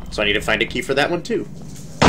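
Footsteps tap on a hard stone floor.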